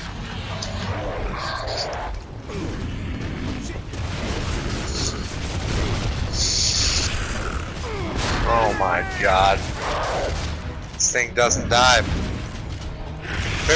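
Flames roar in a low, steady rumble.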